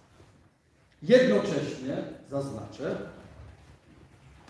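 An elderly man speaks firmly into nearby microphones.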